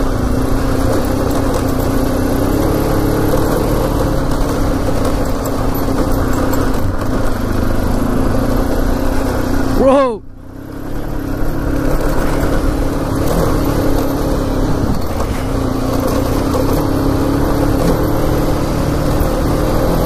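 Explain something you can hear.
Tyres crunch and rumble over a gravel track.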